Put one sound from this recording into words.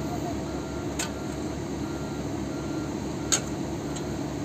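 Metal clanks sharply a couple of times.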